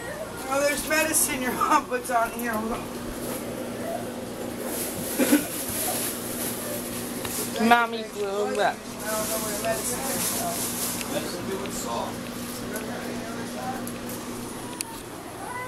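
An air conditioner hums steadily nearby.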